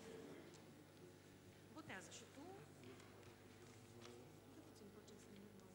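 Men and women murmur quietly in a large room, heard through a microphone.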